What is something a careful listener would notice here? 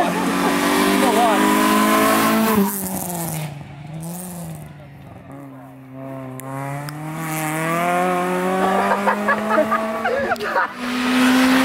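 A rally car engine roars and revs hard as the car speeds past close by.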